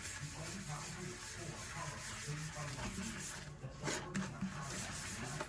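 A sponge scrubs wet, soapy metal with a swishing rasp.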